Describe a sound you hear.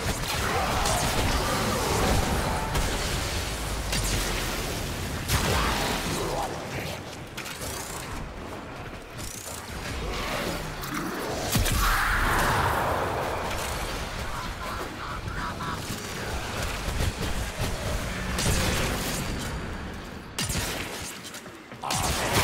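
Electric blasts crackle and burst from game weapons firing.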